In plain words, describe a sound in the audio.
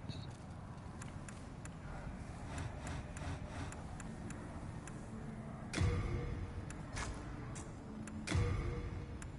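Short menu clicks tick as selections change.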